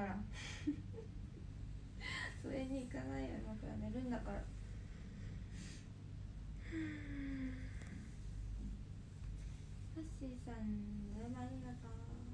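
A young woman speaks softly and close by, in short phrases with pauses.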